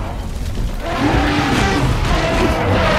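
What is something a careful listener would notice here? A mammoth trumpets loudly nearby.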